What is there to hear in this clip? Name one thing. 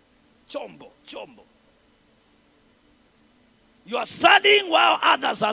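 A young man speaks with animation through a microphone over loudspeakers in a large echoing hall.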